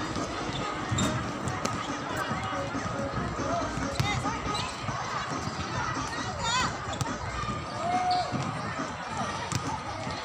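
A volleyball thumps as it is hit.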